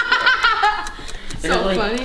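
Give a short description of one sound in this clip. A teenage boy laughs.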